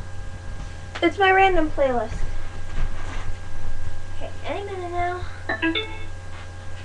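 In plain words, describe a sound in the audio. A young woman speaks in high, sing-song bursts close by.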